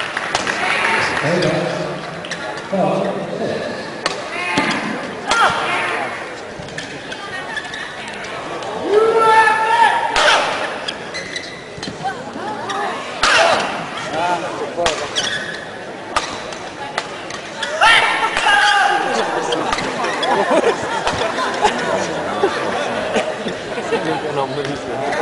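A crowd murmurs and cheers.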